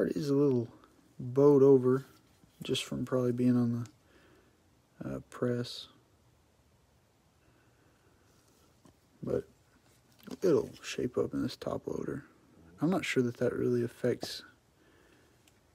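A plastic card sleeve crinkles softly as a card slides into it.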